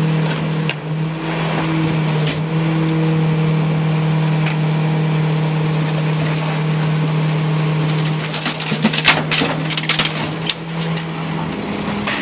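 Wooden furniture cracks and splinters as a garbage truck's packer crushes it.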